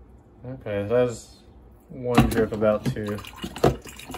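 A glass carafe clunks into place in a coffee maker.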